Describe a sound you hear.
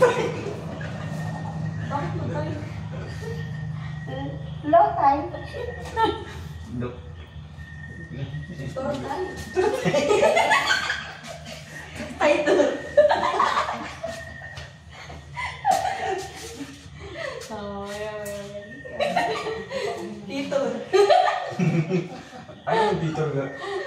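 Several people talk and laugh together nearby in a small echoing room.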